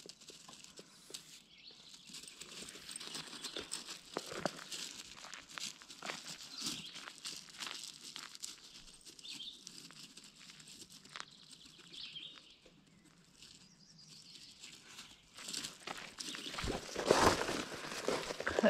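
A small dog sniffs and rustles through gravel and grass close by.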